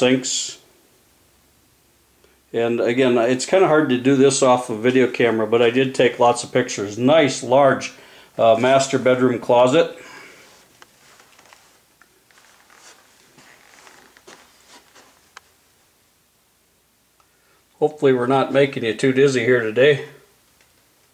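A middle-aged man talks calmly close by, in short bursts with pauses.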